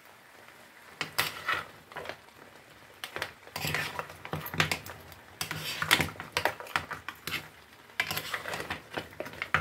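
A spoon scrapes and clatters against shells in a pan.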